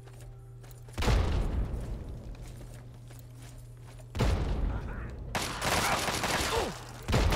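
Explosions boom loudly nearby.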